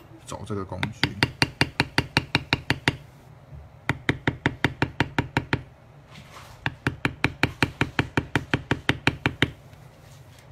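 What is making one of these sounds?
A mallet taps a leather stamping tool in quick, even bursts of sharp knocks.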